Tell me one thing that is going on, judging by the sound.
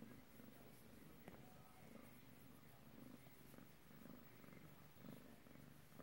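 A hand rubs and rustles through a cat's fur.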